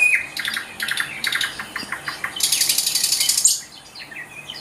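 A small songbird sings loud, rapid trilling phrases close by.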